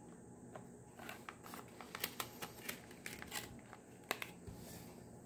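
A plastic case crinkles and clicks as it is handled.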